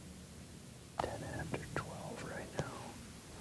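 A man speaks quietly and close.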